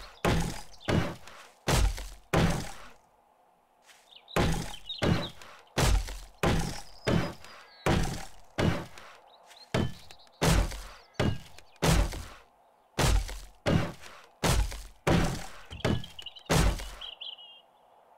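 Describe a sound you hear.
A hammer strikes wooden planks in quick blows.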